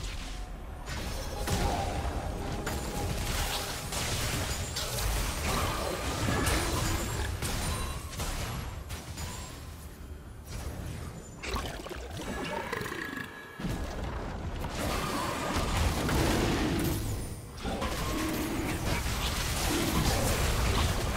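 Magic spells whoosh and crackle during a video game battle.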